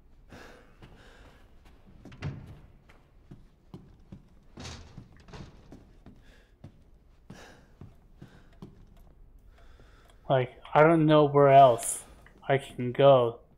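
Footsteps thud on creaking wooden stairs and floorboards.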